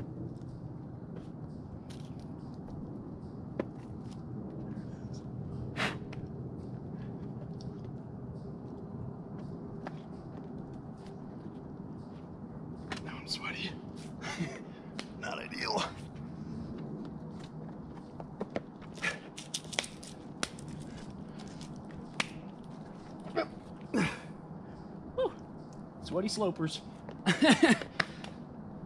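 Hands and climbing shoes scrape and tap against rock.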